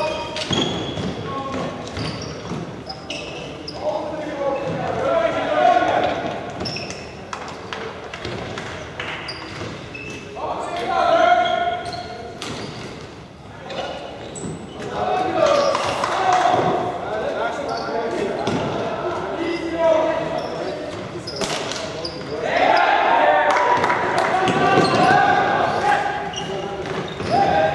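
Balls clack off sticks and thud against the boards.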